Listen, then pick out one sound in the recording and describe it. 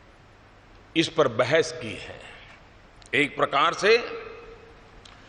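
An elderly man speaks slowly and firmly into microphones in a large echoing hall.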